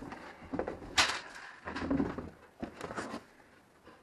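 A foam sheet rustles as hands handle it.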